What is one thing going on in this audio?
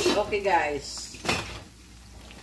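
A metal pot lid clinks.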